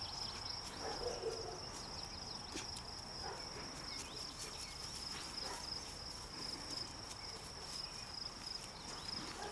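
A dog rustles through dry tall grass.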